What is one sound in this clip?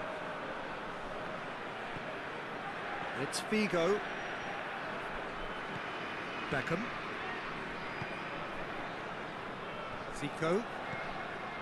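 A stadium crowd murmurs and cheers steadily in the distance.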